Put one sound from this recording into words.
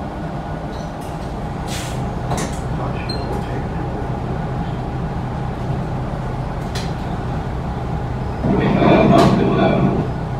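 Loose fittings rattle and clink inside a moving bus.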